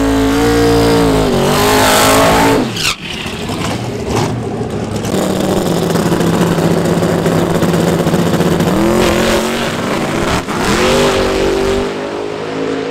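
A loud car engine roars and revs hard.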